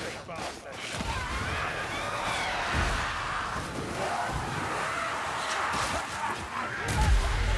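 Creatures snarl and screech in a crowd.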